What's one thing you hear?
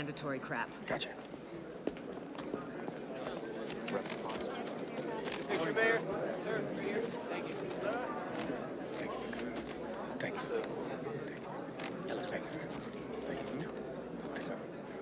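A crowd of people chatters and murmurs in a room.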